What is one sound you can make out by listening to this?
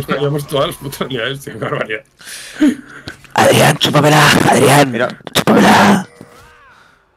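A young man talks excitedly and loudly into a microphone close by.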